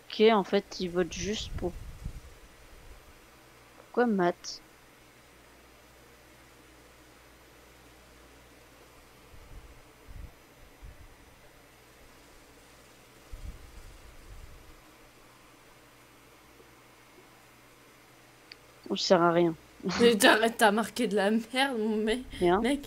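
A young woman talks casually into a headset microphone, close by.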